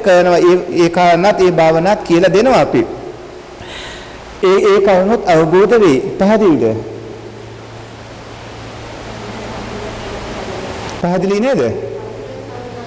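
A man speaks calmly and clearly into a microphone, with pauses.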